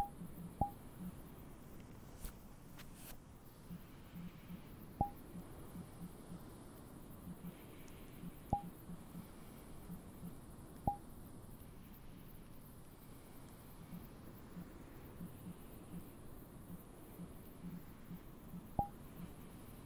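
Short soft interface clicks sound as menu buttons are pressed.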